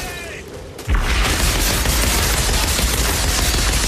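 Gunfire blasts loudly and rapidly.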